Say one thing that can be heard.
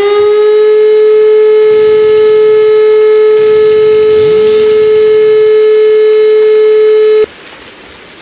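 An alarm rings loudly and steadily, then stops abruptly.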